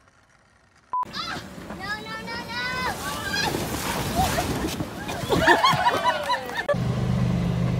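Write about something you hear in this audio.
Children shriek and shout excitedly nearby.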